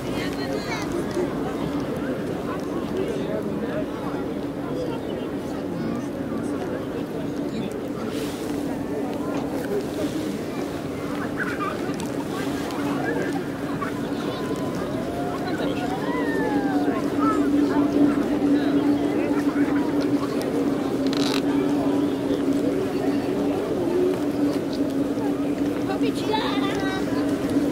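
A crowd murmurs and chatters in the distance outdoors.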